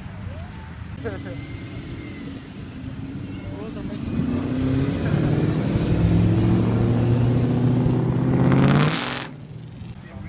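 A V8 muscle car accelerates hard past.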